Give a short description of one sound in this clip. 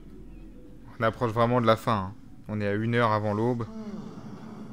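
An elderly man speaks slowly and gravely.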